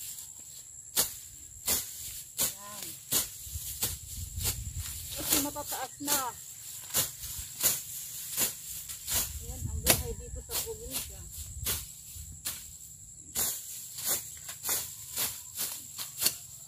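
A hoe chops into the ground with repeated sharp strikes.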